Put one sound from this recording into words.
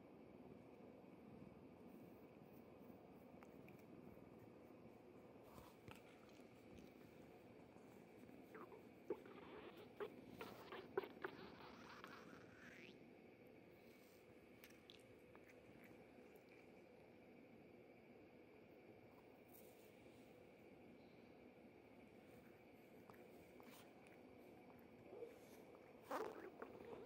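A cat purrs steadily up close.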